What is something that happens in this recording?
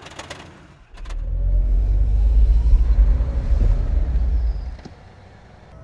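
A car engine rumbles while driving.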